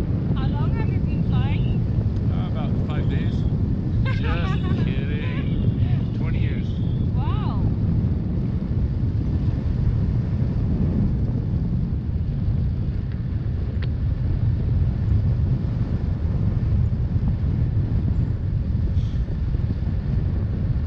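Wind roars loudly against a microphone.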